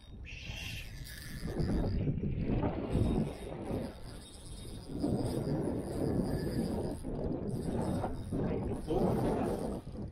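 Small waves lap against a plastic kayak hull.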